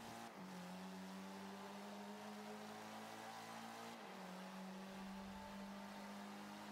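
A racing car engine drones steadily at high speed, its pitch dropping briefly as it shifts gear.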